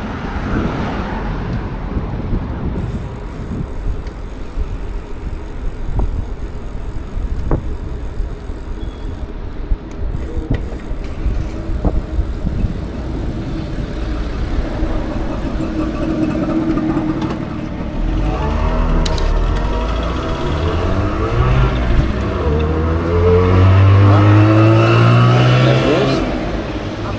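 Bicycle tyres roll and hum over asphalt.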